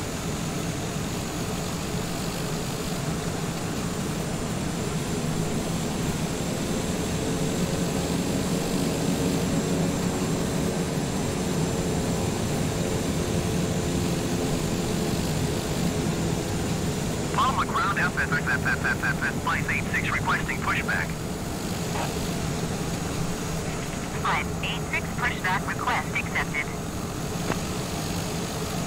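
A single-engine propeller plane drones as it taxis.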